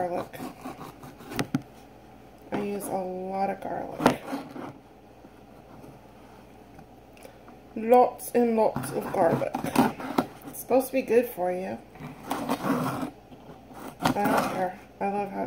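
A knife cuts through a green pepper on a plastic cutting board.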